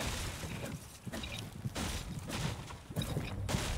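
A pickaxe chops into wood.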